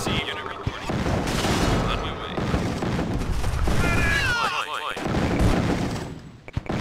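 Gunfire and explosions crackle in a battle between small units.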